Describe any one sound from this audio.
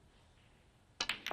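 A snooker cue strikes the cue ball with a sharp click.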